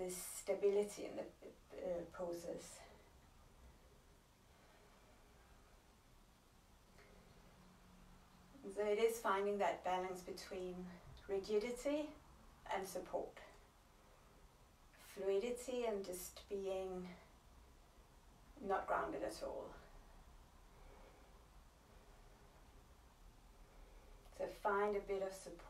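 A woman speaks calmly and slowly, with pauses, close to the microphone.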